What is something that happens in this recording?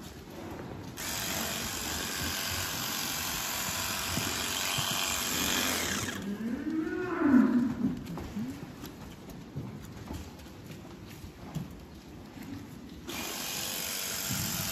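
A small electric trimmer whirs steadily.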